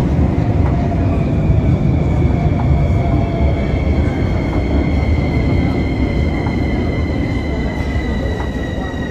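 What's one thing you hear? A metro train rumbles into the station with a high whine that slowly falls in pitch.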